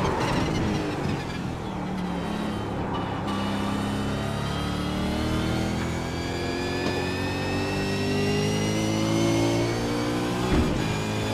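A race car engine roars and shifts through the gears as it speeds up.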